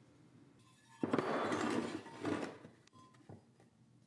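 Steel bars clunk on a workbench.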